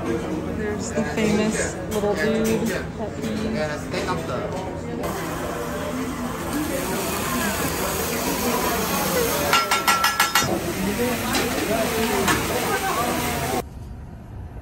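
A busy room hums with many people chatting.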